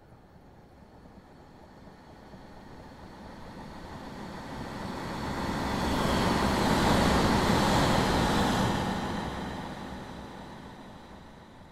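A diesel train rumbles past close by, loud and then fading.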